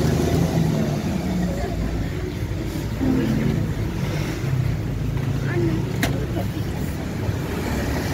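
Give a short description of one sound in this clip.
Pedestrians talk nearby on a busy pavement.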